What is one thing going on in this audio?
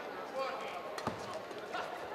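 A racket strikes a shuttlecock with a sharp pop.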